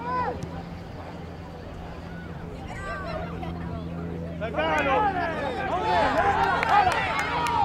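Men and women shout and cheer from the sidelines outdoors, some distance away.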